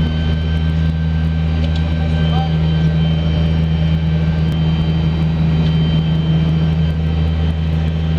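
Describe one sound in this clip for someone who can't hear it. Wind rushes through an open aircraft door.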